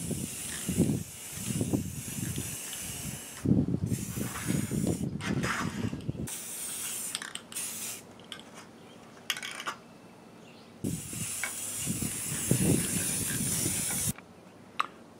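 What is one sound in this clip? An aerosol can hisses in short bursts of spraying close by.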